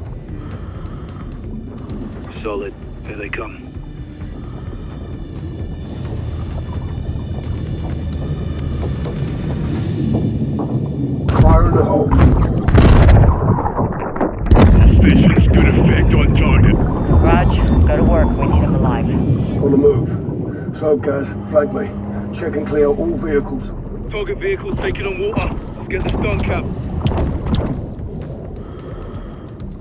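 Water churns and bubbles around a diver.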